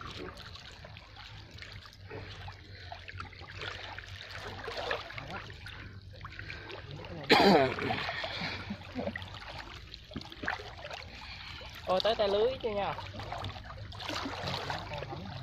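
Water sloshes as a man wades slowly through a pond.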